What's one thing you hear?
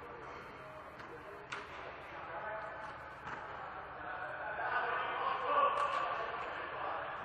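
Young men talk and call out to each other in a large echoing hall.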